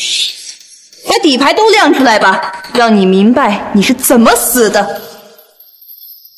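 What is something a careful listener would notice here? A young woman speaks coldly and firmly.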